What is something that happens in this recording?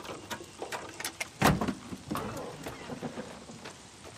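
Metal clanks and rattles under a car bonnet.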